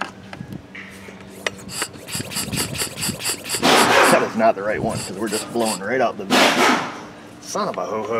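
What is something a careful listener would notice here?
Metal fittings click and rattle as a pressure gauge is handled.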